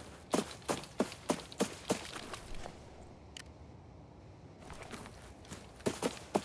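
Footsteps crunch through grass at a steady walking pace.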